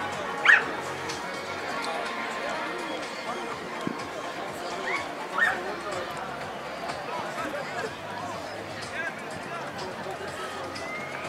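Players shout to each other from across an open field outdoors.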